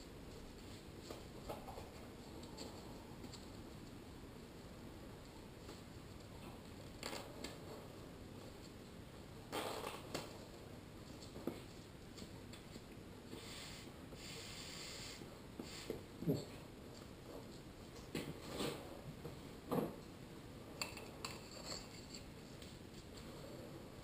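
Straps and a face mask rustle and knock softly close by.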